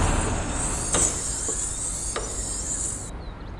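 A bus luggage hatch clicks and swings open.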